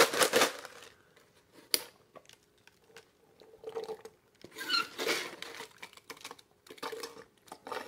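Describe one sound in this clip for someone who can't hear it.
A man slurps a drink through a straw.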